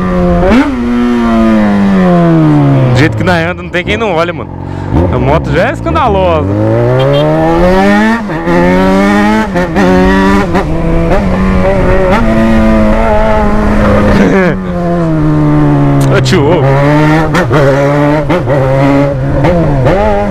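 A motorcycle engine roars close by, revving up and dropping back again and again.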